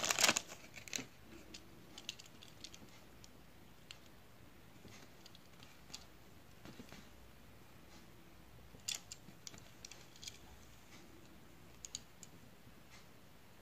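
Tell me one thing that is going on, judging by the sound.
Small clicks and taps come from a toy car being handled.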